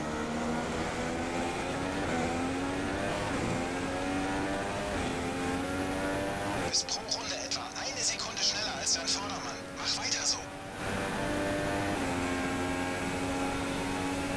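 A racing car engine screams at high revs, rising in pitch and dropping with each gear change.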